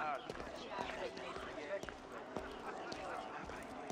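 Footsteps tread on stone paving.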